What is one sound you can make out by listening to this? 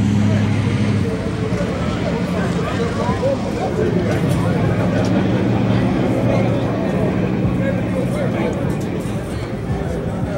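A race car engine idles with a deep, steady rumble.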